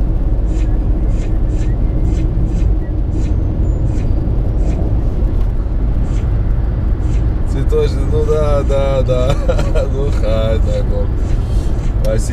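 A car's engine and tyres rumble steadily on a highway.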